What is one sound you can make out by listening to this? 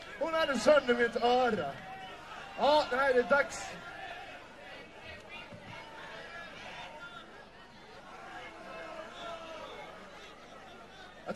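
A live band plays music, heard from the crowd.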